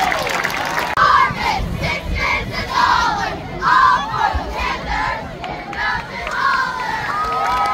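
A group of young girls chant together in rhythm.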